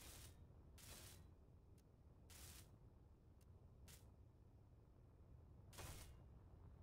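A welding tool hisses in short bursts.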